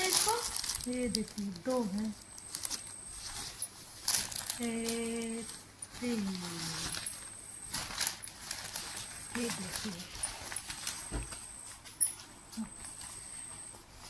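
A plastic bag crinkles as hands handle it.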